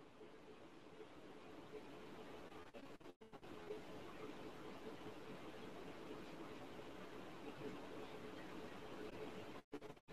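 A handheld massage device hums softly.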